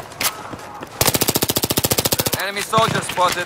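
A submachine gun fires a rapid automatic burst.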